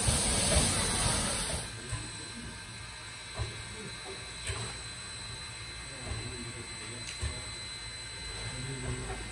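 A steam locomotive's engine chuffs and rumbles while idling.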